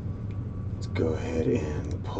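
A man speaks briefly into a microphone, close up.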